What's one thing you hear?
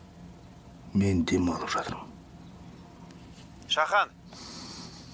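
A man speaks in a low voice on a phone.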